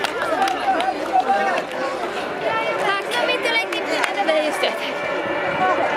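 A crowd of people chatters and cheers in the open air.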